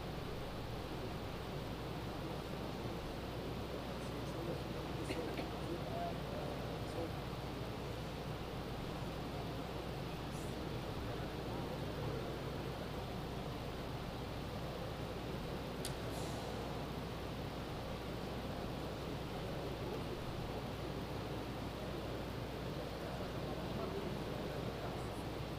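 A low murmur of people talking fills a large hall.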